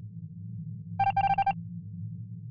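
A short burst of electronic beeps sounds.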